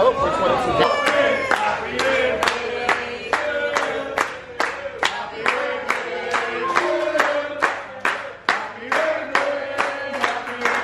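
A group of people sings together.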